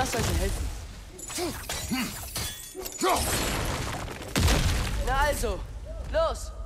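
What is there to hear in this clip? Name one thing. Heavy wood and stone crash and rumble as a structure collapses.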